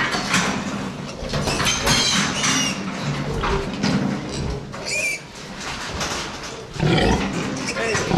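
A piglet squeals loudly.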